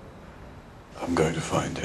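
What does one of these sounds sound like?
A middle-aged man speaks firmly, close by.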